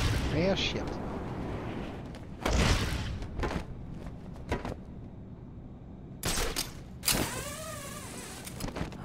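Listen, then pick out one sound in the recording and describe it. A cape flaps and whooshes through the air.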